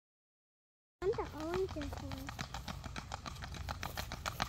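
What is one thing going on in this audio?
Horse hooves thud at a steady trot.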